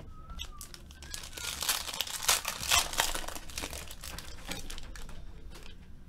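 A foil wrapper crinkles and tears as hands open a pack of cards.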